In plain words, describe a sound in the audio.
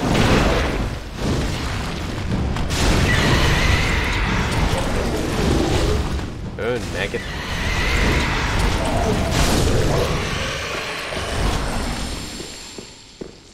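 Fireballs roar and burst loudly.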